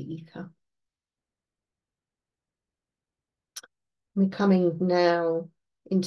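An older woman speaks calmly and close, as if over an online call.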